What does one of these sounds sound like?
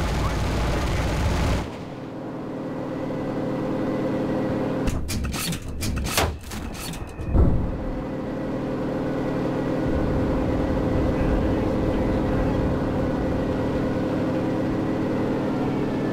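A propeller aircraft engine drones steadily, rising and falling in pitch.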